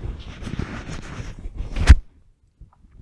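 A man rustles his clothing with his hand.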